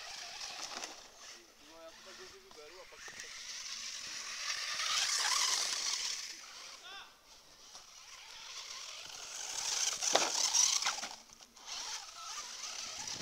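A small electric motor whines high as a toy car races past.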